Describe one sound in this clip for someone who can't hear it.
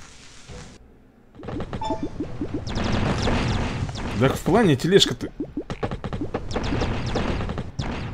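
Cartoon laser blasts zap repeatedly.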